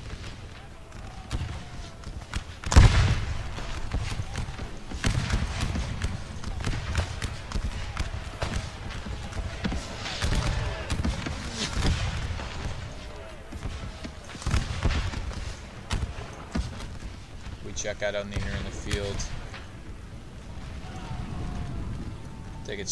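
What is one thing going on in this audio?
Rifle volleys crack and boom again and again.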